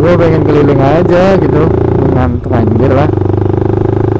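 A motorcycle engine revs up and down sharply.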